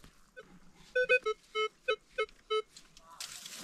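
A metal detector beeps in short, quick pulses.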